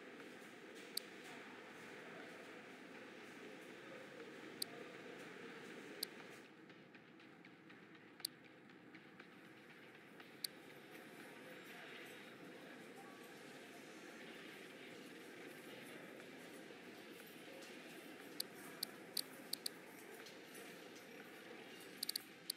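Short, sharp menu clicks sound now and then.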